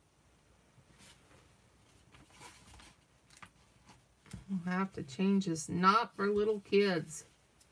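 Paper rustles softly as hands smooth and fold it.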